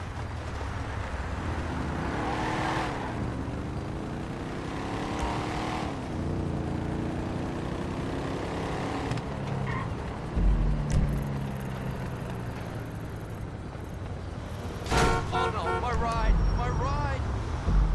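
A car engine roars and revs, rising and falling in pitch.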